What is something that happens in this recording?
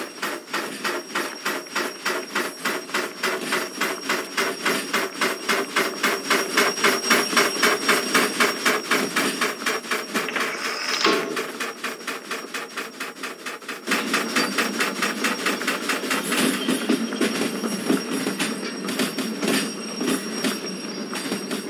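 Steel wheels clatter on rails.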